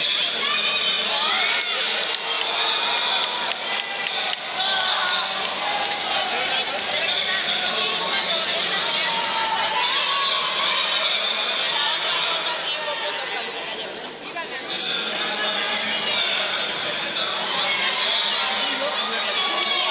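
A crowd of people cheer and shout in a large echoing hall.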